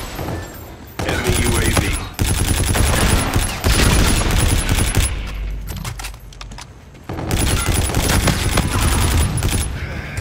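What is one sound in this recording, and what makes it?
A rapid-fire gun shoots in loud, fast bursts.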